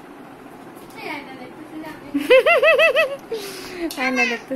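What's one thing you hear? A woman laughs nearby.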